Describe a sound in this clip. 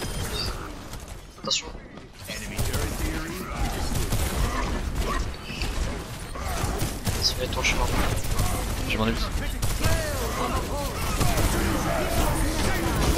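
Weapon blasts and energy beams fire rapidly in a game.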